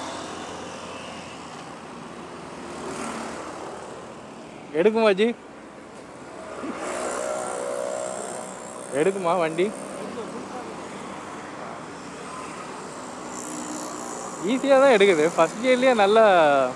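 Wind rushes past a moving scooter.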